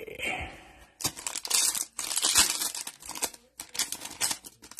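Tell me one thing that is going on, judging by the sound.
Plastic wrapping crinkles and rustles close by.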